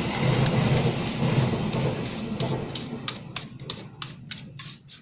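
A brush scrubs briskly over a hard surface.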